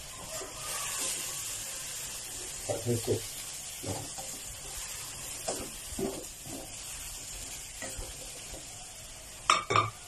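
A spatula scrapes and clatters against a pan.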